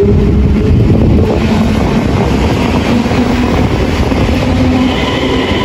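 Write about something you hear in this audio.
An electric train rushes past close by with a loud rumble.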